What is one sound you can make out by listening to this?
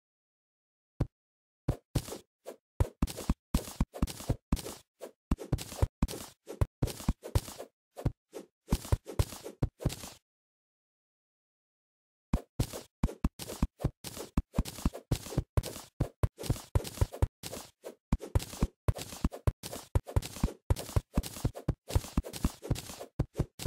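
A pickaxe chips rapidly at dirt and stone in quick repeated blows.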